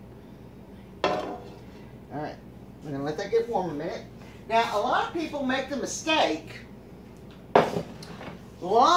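Metal pots clank against a stovetop.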